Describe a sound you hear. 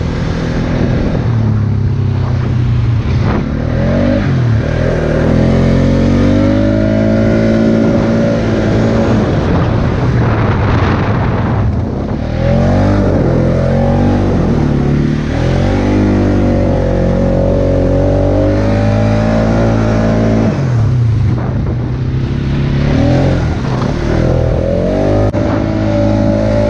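An all-terrain vehicle engine roars up close, its revs rising and falling.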